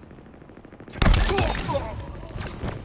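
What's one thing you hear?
A gun blasts loudly with a crackling burst.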